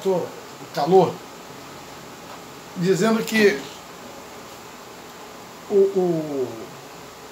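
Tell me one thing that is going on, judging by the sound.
A middle-aged man talks with animation close to the microphone, in short bursts.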